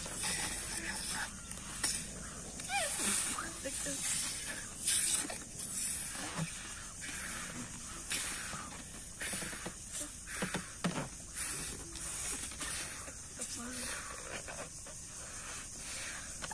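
Children blow air into balloons in short puffs.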